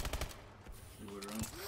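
A young man speaks briefly into a headset microphone.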